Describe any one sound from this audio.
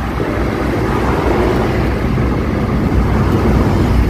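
A heavy truck passes close alongside.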